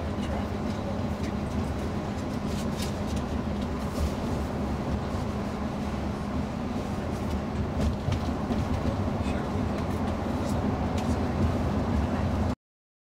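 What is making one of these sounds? Tyres roar on a motorway.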